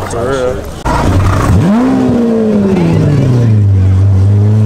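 A sports car engine revs loudly and winds back down.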